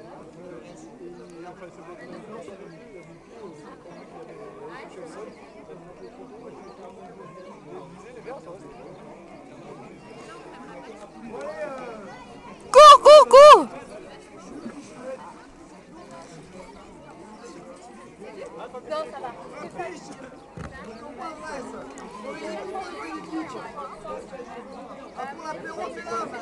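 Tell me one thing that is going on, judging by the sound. Several adults talk casually nearby outdoors.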